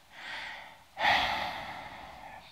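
A man sighs heavily.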